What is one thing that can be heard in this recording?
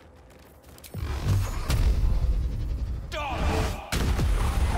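A magic spell hums with a deep, loud rumble.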